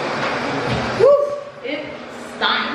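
A young woman talks close by with animation.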